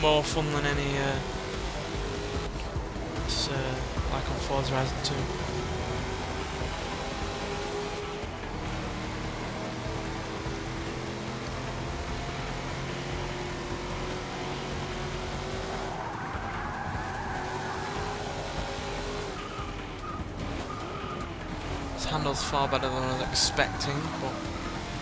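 A car engine roars, rising in pitch as it speeds up and dropping as it slows.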